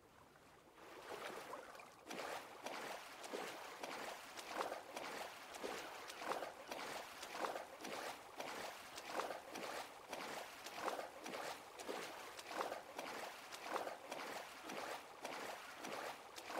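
Water splashes and sloshes in rhythmic strokes as a swimmer swims.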